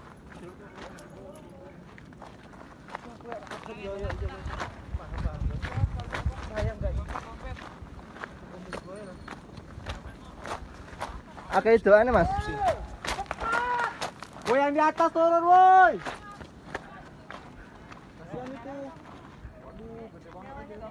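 Footsteps crunch on loose rocks.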